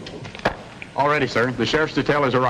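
A man speaks in a commanding voice.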